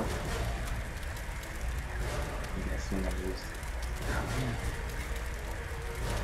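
Fire roars and crackles steadily.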